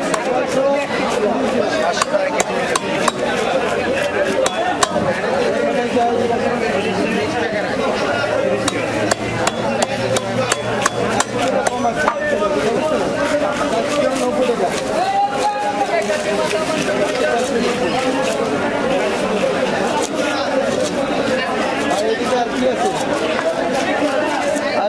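A knife scrapes scales off a fish with quick rasping strokes.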